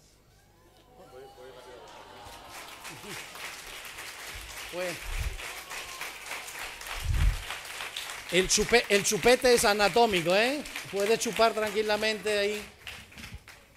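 An audience applauds and cheers in a large room.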